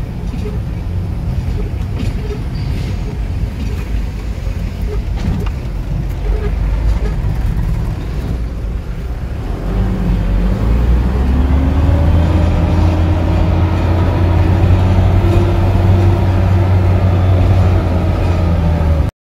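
A car engine hums steadily while driving on a bumpy road.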